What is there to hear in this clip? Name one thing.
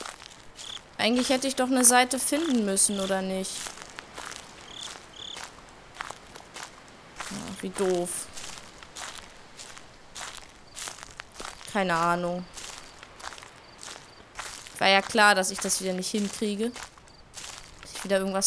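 A young woman speaks quietly and calmly, close to a microphone.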